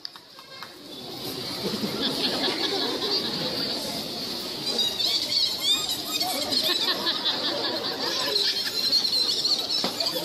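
A crowd chatters and murmurs outdoors.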